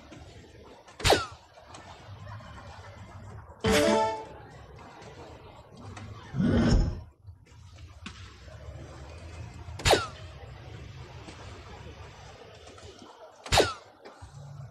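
Darts thud sharply into a dartboard.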